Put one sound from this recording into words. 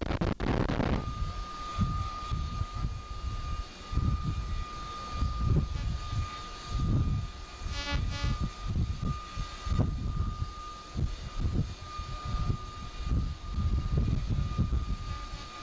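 Wind buffets the microphone in strong gusts.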